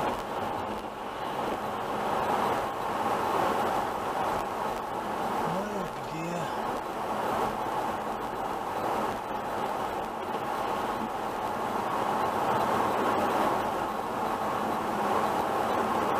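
A car engine hums inside the cabin.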